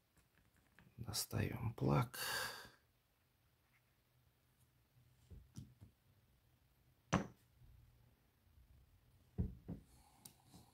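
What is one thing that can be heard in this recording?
Metal lock parts click and clink in hands.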